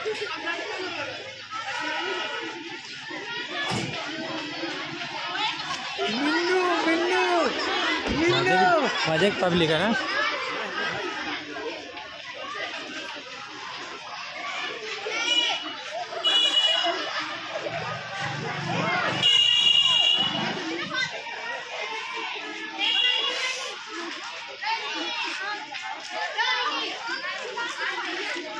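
A crowd of young women and girls chatters and calls out outdoors.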